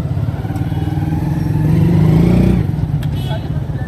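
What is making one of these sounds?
A motor rickshaw's engine putters close by as it passes.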